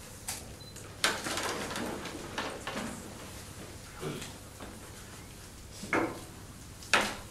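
Papers rustle and folders are handled nearby.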